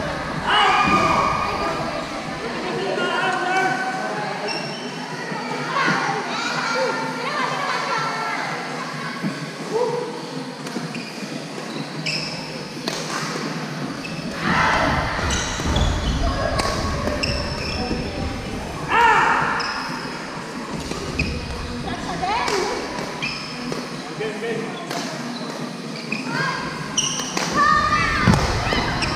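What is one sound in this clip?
The sounds echo around a large hall.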